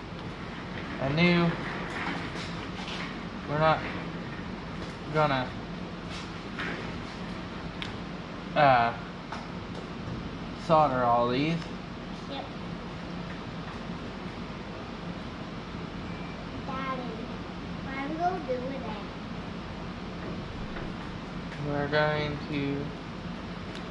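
A man speaks casually in short bursts nearby.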